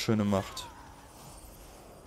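A magic spell bursts with a swirling whoosh.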